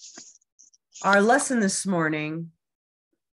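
A woman sings a few notes over an online call.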